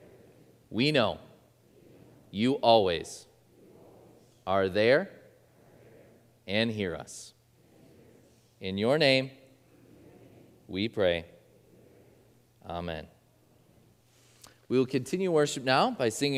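A man speaks slowly and calmly into a microphone, in short phrases with pauses, in an echoing hall.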